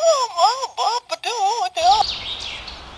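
Penguins call with loud, wavering cries.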